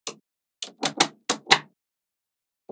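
Small magnetic balls click sharply together as they snap into place.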